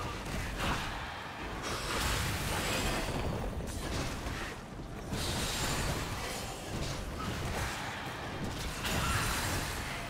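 Video game spell effects whoosh and crackle in quick bursts.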